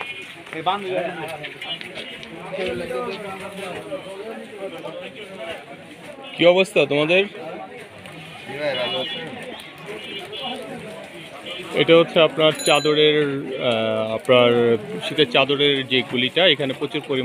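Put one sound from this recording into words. Several men talk and call out nearby, some close by and loud.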